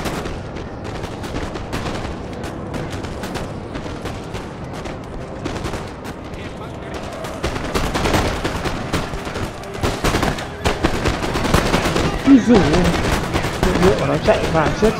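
Musket volleys crackle and pop across a battlefield.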